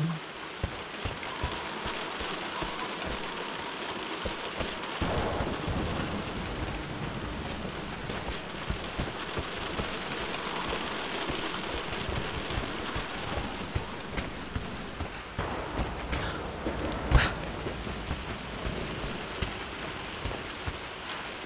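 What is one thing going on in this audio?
Footsteps scuff across a wooden floor.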